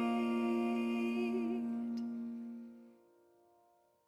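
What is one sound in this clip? A soprano saxophone holds a note and fades out.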